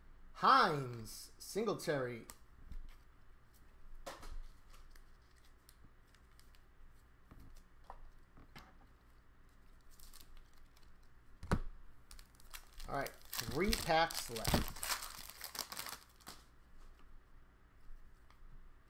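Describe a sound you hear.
Trading cards slide and shuffle against each other.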